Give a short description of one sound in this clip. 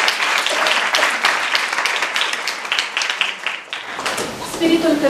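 An audience applauds in a room.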